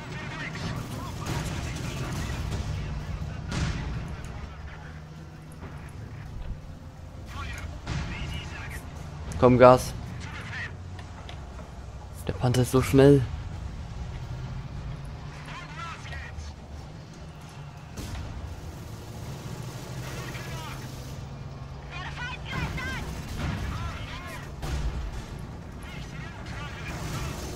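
Explosions boom in short bursts.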